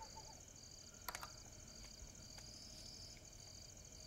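Small objects are set down on a table with soft clicks.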